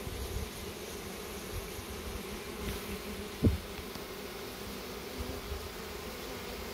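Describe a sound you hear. A swarm of bees buzzes steadily up close.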